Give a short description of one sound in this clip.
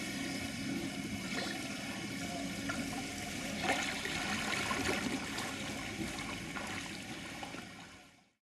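A swimmer splashes through water close by.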